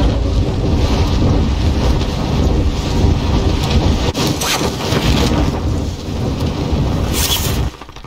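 Wind rushes past during a freefall.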